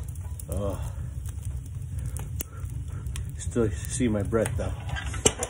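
Flames roar softly in a stove.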